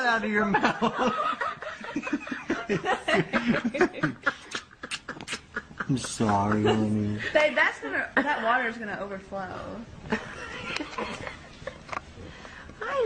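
A woman talks to a baby close by in a playful, animated voice.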